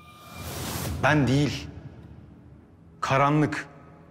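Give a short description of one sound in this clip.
A man speaks tensely, close by.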